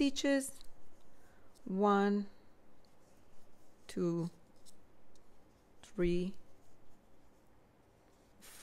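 Yarn rustles softly as a crochet hook pulls it through stitches.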